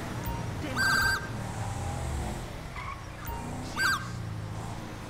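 A police siren gives two short yelps.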